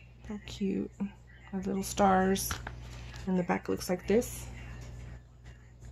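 A paper book cover rustles softly as it is handled and turned over.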